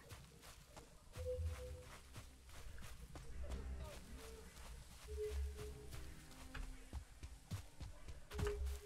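Footsteps tread quickly through grass.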